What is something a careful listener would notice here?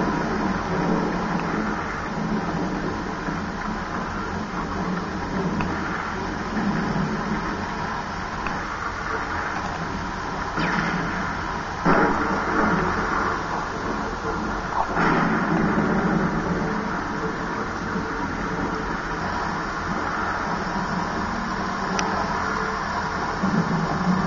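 Video game sounds play from a television speaker, with sudden loud bursts.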